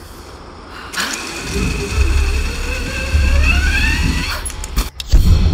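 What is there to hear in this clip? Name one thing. A pulley whirs and whines, rising in pitch, while sliding down a rope line.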